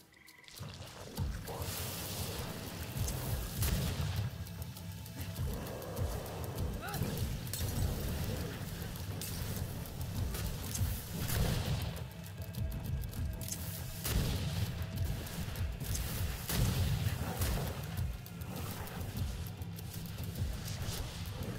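Blasts and impacts crack and thud repeatedly.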